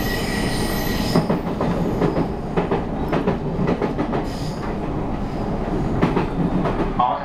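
Train wheels clatter over rail joints and switches.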